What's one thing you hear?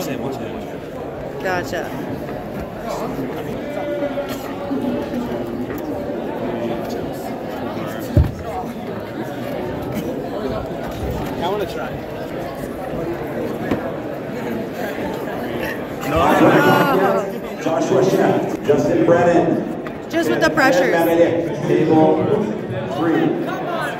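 A crowd of teenagers chatters nearby.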